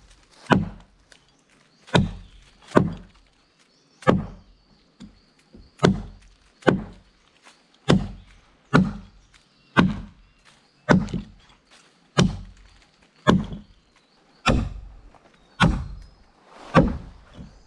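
An axe chops into a tree trunk with heavy, steady blows.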